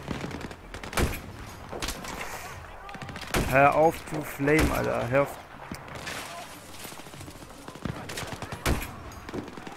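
Rifle shots ring out one after another.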